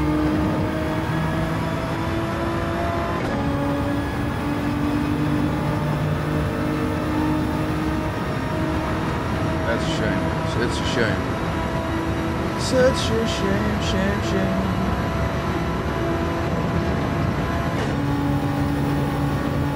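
A racing car engine roars steadily, shifting up through the gears.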